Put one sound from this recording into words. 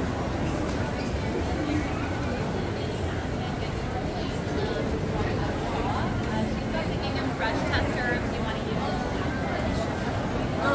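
A crowd of people chatters in a large echoing indoor hall.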